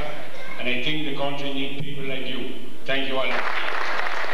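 An elderly man speaks calmly into a microphone, heard through a loudspeaker in an echoing hall.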